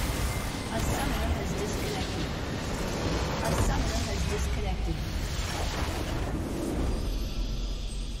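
Loud battle effects clash and explode.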